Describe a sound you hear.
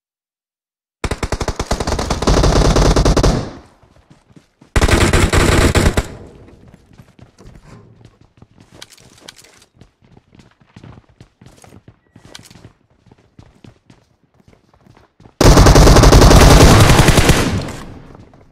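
Rapid automatic rifle fire rattles in loud bursts.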